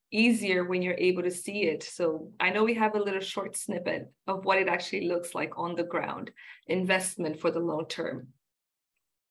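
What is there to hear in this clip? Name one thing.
A young woman speaks calmly and warmly over an online call.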